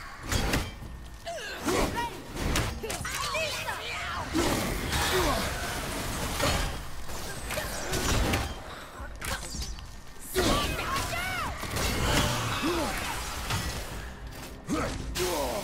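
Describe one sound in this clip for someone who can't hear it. Heavy blows thud and clang in a fight.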